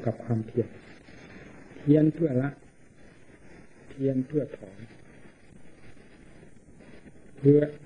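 An elderly man speaks slowly into a microphone in short bursts.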